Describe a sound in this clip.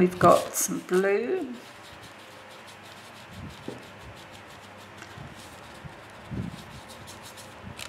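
A paintbrush softly brushes and dabs on paper.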